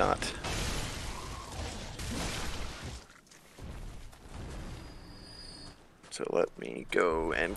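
A blade slashes into flesh with wet thuds.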